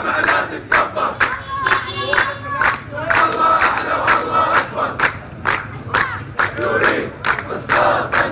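A large crowd of men chants loudly together.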